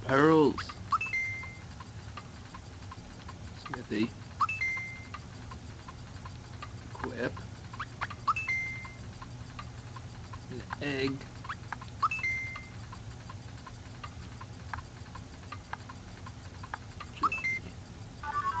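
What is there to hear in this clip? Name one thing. Game menu blips chime as options are chosen.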